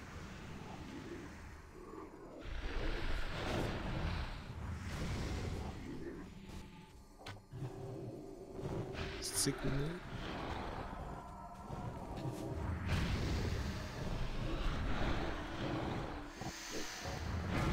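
Spells crackle and clash in a busy battle.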